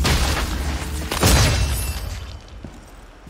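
A magic spell bursts with a loud, rushing whoosh.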